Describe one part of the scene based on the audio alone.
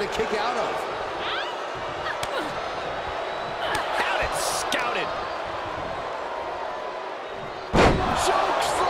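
A large crowd cheers and whistles in a big echoing arena.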